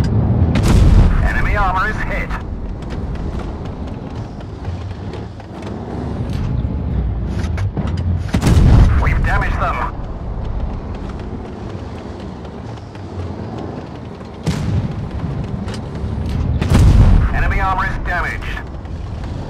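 A heavy tank's cannon fires with a deep boom.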